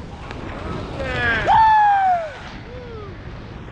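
A young man shouts excitedly close by.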